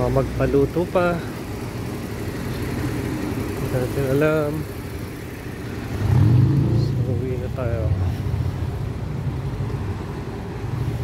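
Cars drive past on a nearby street.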